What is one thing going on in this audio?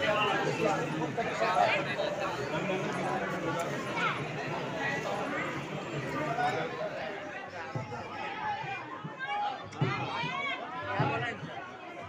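Many men and women talk at once around the listener, in a crowded space with a faint echo.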